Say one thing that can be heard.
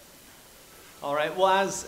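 A younger man speaks through a microphone.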